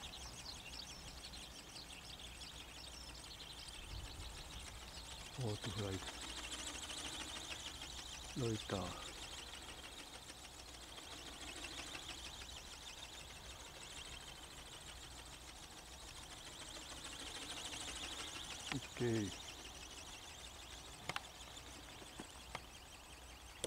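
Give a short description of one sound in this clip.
A small aircraft engine whines high overhead, its pitch rising and falling as it circles.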